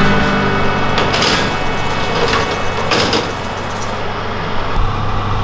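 A metal baking tray scrapes as it slides onto an oven rack.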